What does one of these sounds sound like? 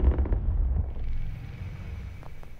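A distant explosion rumbles deeply and fades.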